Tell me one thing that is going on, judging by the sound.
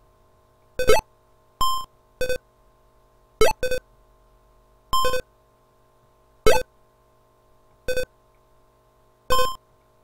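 Retro video game bleeps and rising zaps sound in short bursts.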